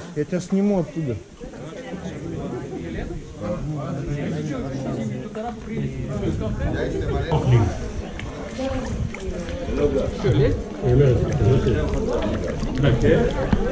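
Young men talk and call out nearby, outdoors.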